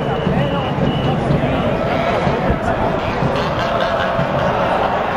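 A large stadium crowd roars and cheers steadily, echoing around the stands.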